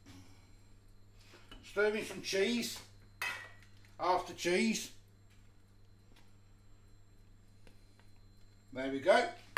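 A spatula stirs and scrapes in a saucepan.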